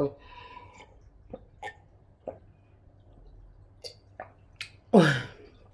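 A woman gulps water from a glass.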